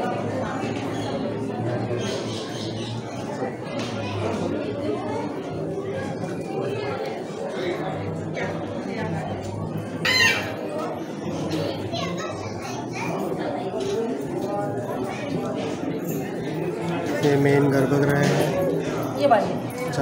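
A crowd of men and women murmur and chatter nearby indoors.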